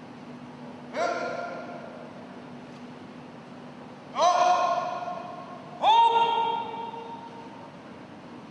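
A man gives short, sharp shouts that ring out in a large echoing hall.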